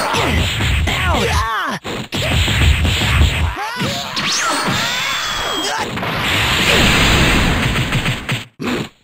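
An energy aura roars and crackles steadily.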